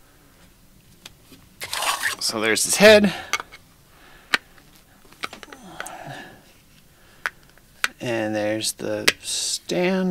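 Small plastic clicks sound as a toy figure is handled.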